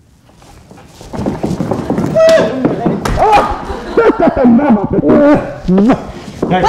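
An elderly woman cries out with emotion from a stage, heard from the audience.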